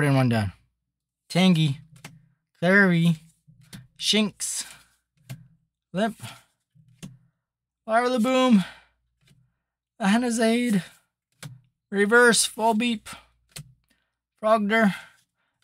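Playing cards slide against each other as they are flipped.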